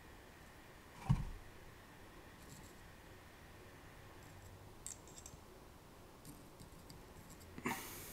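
Small plastic pieces click and tap softly as they are handled.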